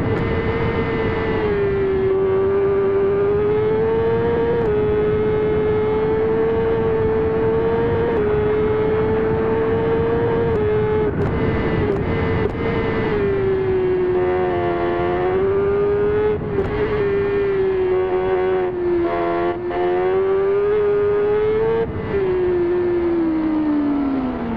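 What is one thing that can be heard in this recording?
A motorcycle engine whines at high revs, its pitch dipping as gears shift and falling as it slows.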